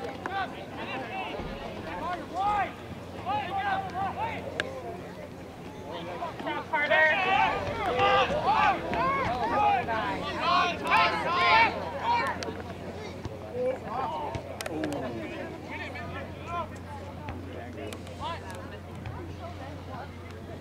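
Young men shout and call out across an open field, loudest in the middle.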